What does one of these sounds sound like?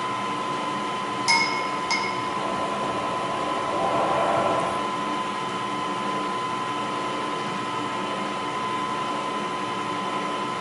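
A milling machine spindle hums steadily.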